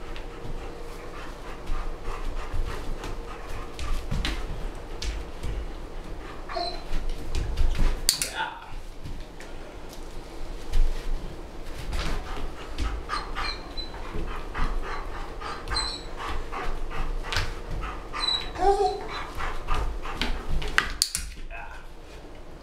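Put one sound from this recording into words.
A dog's paws thump on cardboard boxes.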